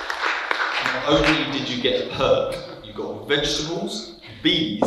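A young man speaks through a microphone to an audience.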